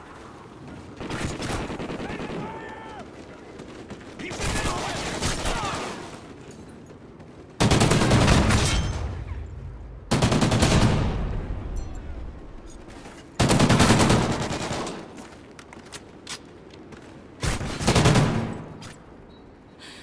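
Bursts of automatic gunfire ring out loudly.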